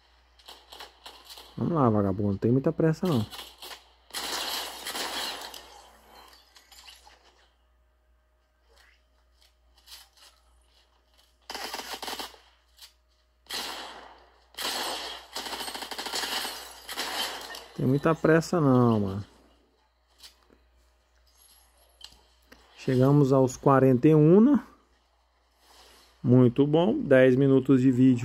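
Video game sound effects play from a small phone speaker.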